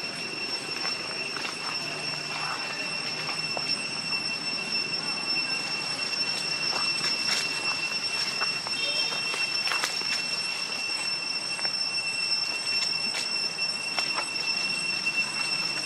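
A monkey's feet rustle through dry leaves on the ground.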